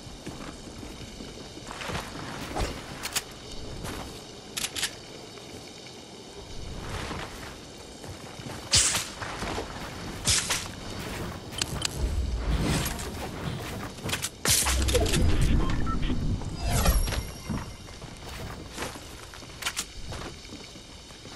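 Wooden walls and ramps clatter into place as game characters build.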